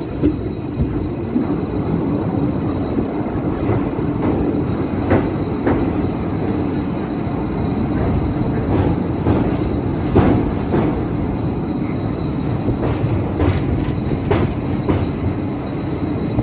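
A train rumbles steadily across a steel bridge.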